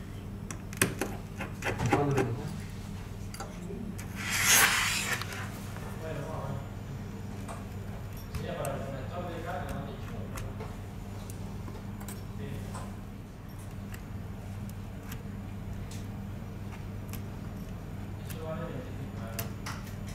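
Small metal tools tap and click against plastic and glass.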